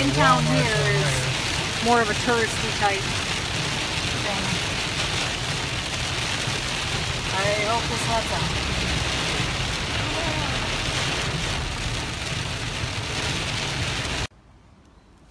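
Heavy rain and hail drum hard on a car's windshield and roof.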